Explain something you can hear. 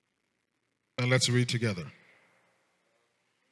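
A man speaks into a microphone in a short burst.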